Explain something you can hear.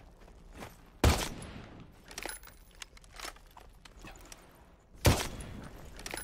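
Gunshots crack loudly in a video game.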